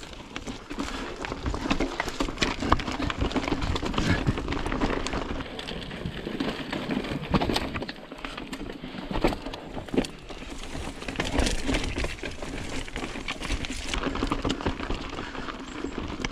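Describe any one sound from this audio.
Bicycle tyres crunch and rattle over loose rocks.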